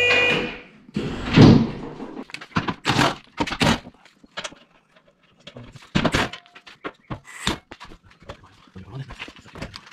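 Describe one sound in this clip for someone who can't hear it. A plastic panel knocks and rattles.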